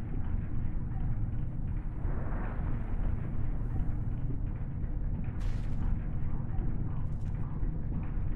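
Electricity crackles and buzzes in short sparks.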